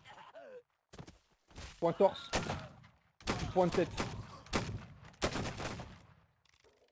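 Muskets fire in a ragged volley.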